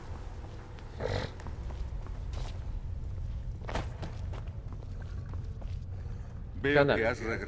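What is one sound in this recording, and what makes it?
A young man speaks briefly into a headset microphone.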